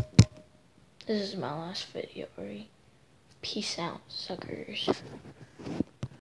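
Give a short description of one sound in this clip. A boy talks close to a phone microphone.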